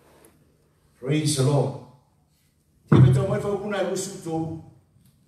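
A man speaks through a microphone and loudspeakers in an echoing hall, in short bursts.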